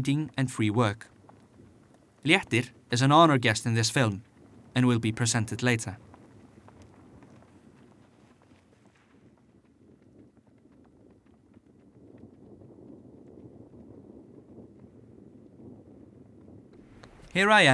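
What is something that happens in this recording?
Horse hooves thud on snowy ground at a steady trot.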